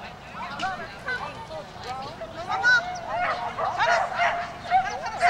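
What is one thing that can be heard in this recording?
A woman calls out commands to a dog outdoors.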